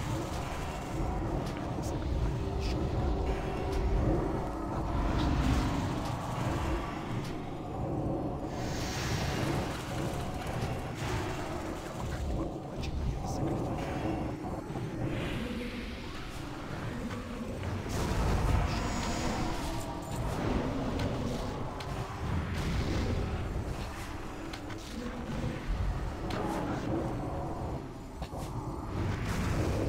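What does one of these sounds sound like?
Magic spells crackle and boom in a fantasy battle.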